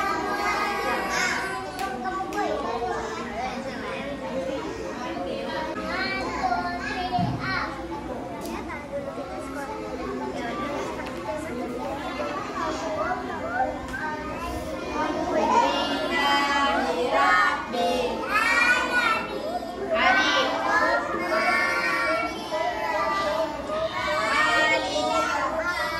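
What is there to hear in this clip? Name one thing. Young children sing together in a lively chorus, getting louder toward the end.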